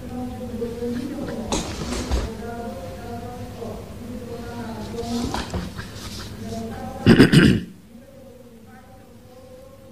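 A middle-aged woman speaks calmly into a microphone in an echoing room.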